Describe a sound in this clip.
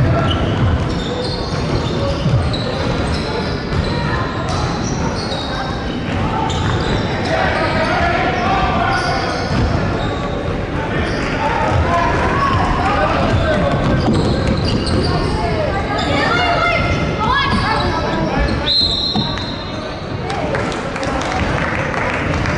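A crowd of spectators chatters throughout.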